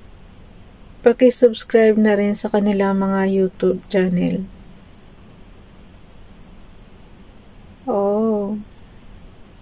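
A middle-aged woman speaks calmly and slowly, close to a microphone.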